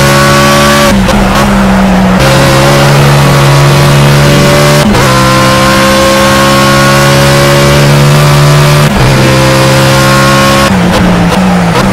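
A racing car engine roars loudly at high revs, rising and dropping in pitch with quick gear changes.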